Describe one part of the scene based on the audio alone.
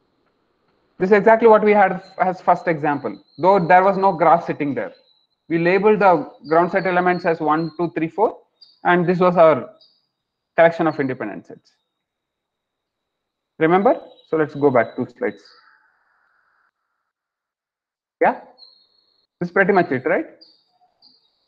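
A young man speaks calmly through a headset microphone over an online call, with pauses.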